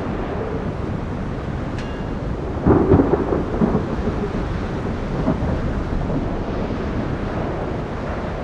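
A warship's engines rumble low and steady as it moves through the sea.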